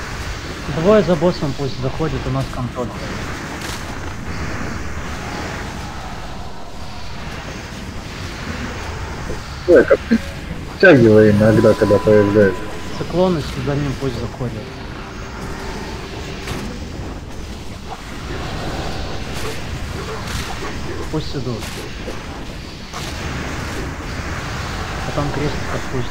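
Magic spells crackle and whoosh amid a fantasy battle.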